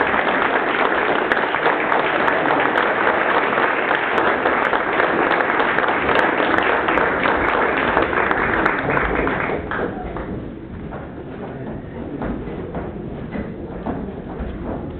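An audience applauds loudly in a large room, then the clapping thins out.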